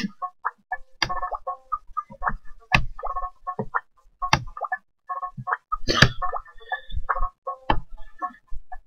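Short game sound effects pop now and then.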